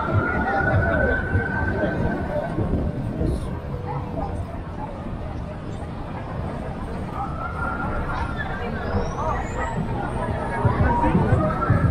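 A crowd chatters and murmurs all around outdoors.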